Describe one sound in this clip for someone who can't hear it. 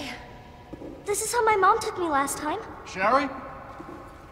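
A young girl speaks softly.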